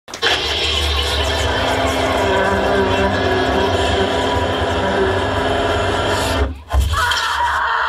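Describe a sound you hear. Electric guitars play loudly in a live band.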